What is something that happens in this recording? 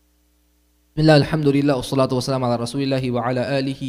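A man chants in a loud, drawn-out voice through a microphone.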